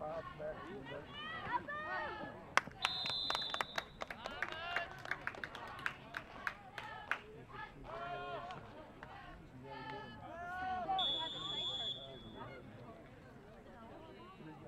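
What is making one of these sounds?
Spectators and players shout and cheer outdoors.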